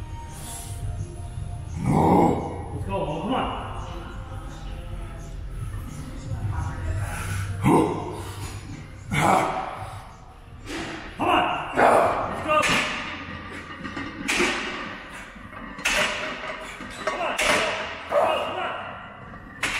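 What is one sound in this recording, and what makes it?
Weight plates clank on a barbell.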